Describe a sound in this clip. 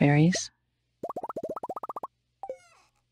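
Quick rising electronic blips chime in a rapid run.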